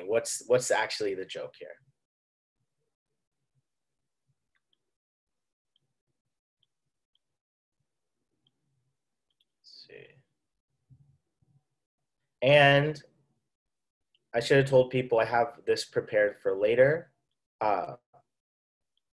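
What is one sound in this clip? A young man speaks with animation over an online call, pausing between phrases.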